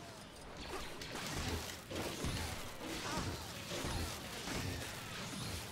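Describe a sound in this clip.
Lightsabers hum and clash.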